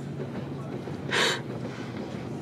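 A young woman sobs and sniffs close by.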